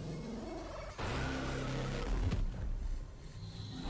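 A crackling electronic glitch sound bursts out.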